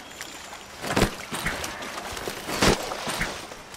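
A sharp thud of a kick strikes something.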